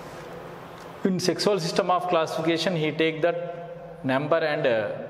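A man lectures calmly, close to the microphone.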